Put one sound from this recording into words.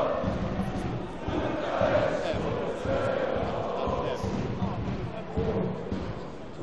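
A large crowd of football supporters chants and sings together in a big stadium.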